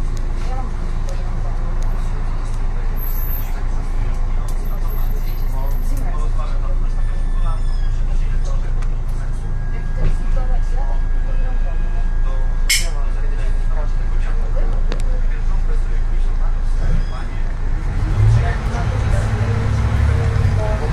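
A bus engine rumbles low and steady from inside the bus.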